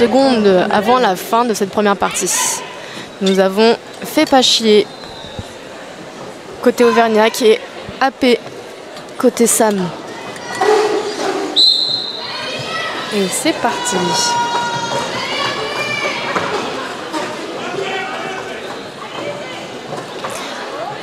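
Roller skates roll and scrape on a hard floor.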